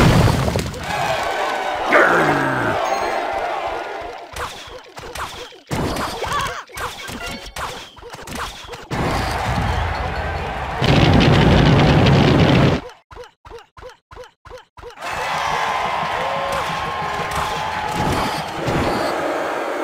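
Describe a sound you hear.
Game sound effects clash and pop as troops battle.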